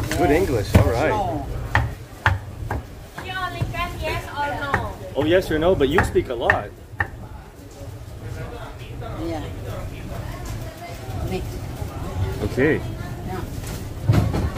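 A middle-aged woman talks nearby with animation.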